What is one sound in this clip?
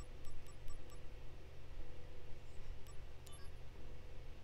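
Short electronic menu clicks tick softly.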